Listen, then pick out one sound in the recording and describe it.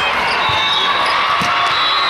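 A volleyball is struck with a hand.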